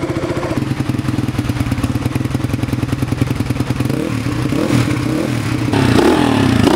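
A motorcycle engine idles loudly with a rapid, steady throbbing.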